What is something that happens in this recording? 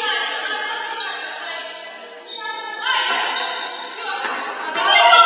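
Young women players call out to each other in an echoing gym.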